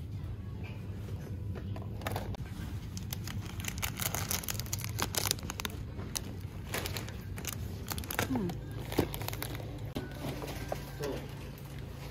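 Plastic snack wrappers crinkle and rustle as they are handled.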